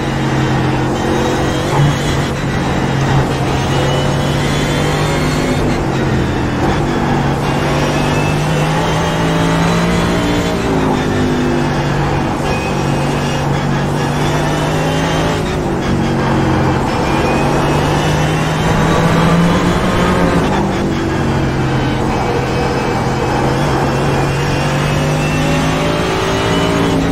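A racing car engine roars loudly, revving up and down through the gears.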